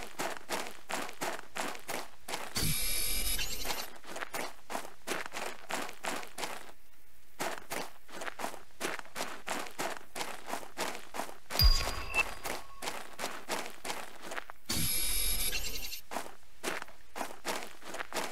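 Footsteps crunch steadily on dry, hard ground.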